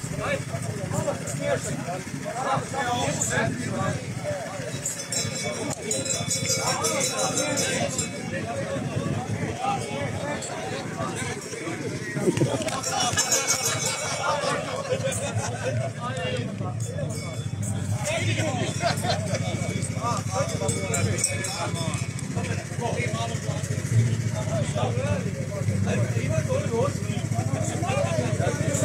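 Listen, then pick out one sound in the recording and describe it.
A crowd of men and women chat and call out close by outdoors.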